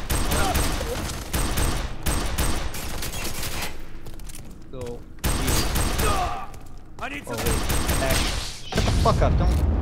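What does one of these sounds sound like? Pistol shots ring out in bursts.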